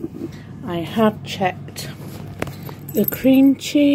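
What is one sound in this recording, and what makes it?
Cloth rustles as it is handled.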